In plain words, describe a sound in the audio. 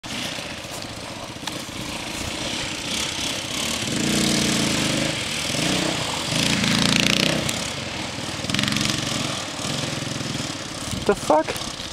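Quad bike engines rev and putter outdoors.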